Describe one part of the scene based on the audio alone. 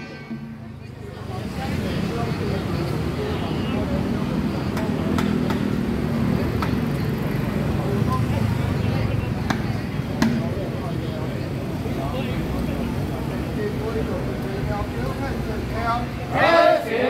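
Many hand drums rattle rapidly as a group of men twirl them.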